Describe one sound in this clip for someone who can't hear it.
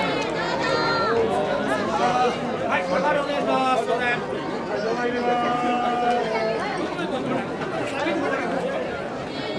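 A large outdoor crowd of men and women chants and shouts loudly.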